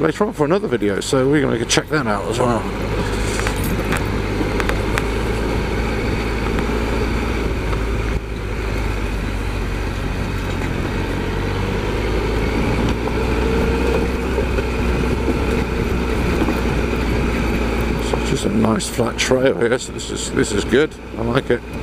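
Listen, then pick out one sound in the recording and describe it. An engine rumbles steadily as a small vehicle drives along a bumpy dirt track.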